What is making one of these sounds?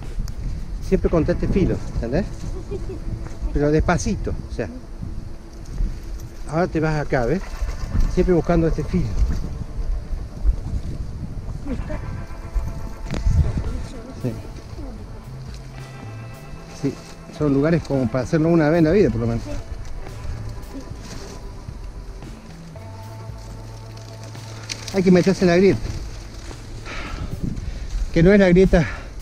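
Footsteps scuff and crunch on rock.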